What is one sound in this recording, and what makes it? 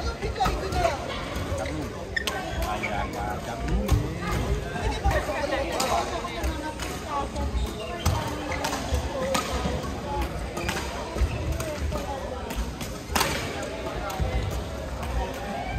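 Shoes squeak and thud on a court floor.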